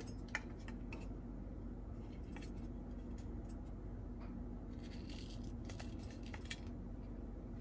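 Plastic toy pieces click and tap together in someone's hands.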